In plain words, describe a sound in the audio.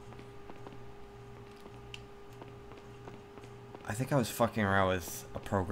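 Footsteps walk at a steady pace on a hard floor.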